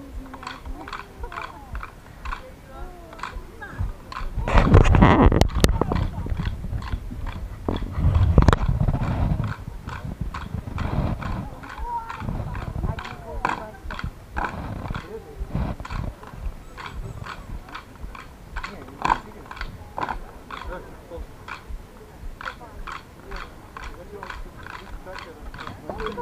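Rhythmic folk dance music plays through a loudspeaker outdoors.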